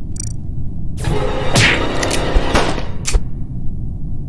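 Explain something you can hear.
A loud, harsh burst of slashing noise sounds.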